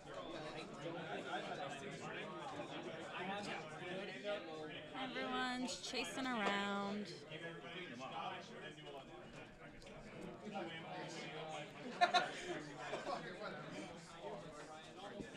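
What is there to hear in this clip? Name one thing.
Two men talk casually close by.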